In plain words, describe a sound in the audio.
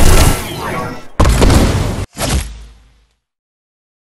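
Loud video game combat effects crash and crackle, then cut off into silence.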